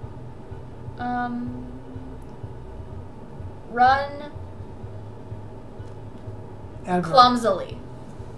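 A young girl speaks in short, lively bursts close by.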